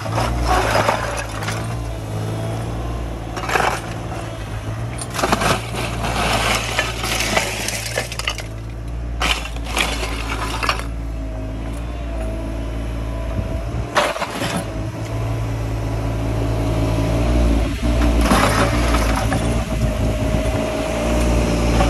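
A mini excavator's diesel engine rumbles steadily close by.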